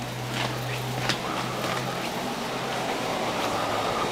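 Footsteps pad softly across a floor.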